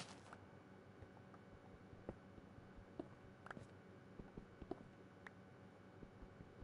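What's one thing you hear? A stone pickaxe chips at stone blocks with sharp taps.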